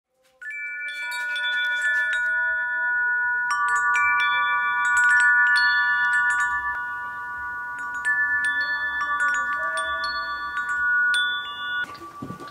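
Metal wind chimes ring softly, with long ringing tones that overlap and fade.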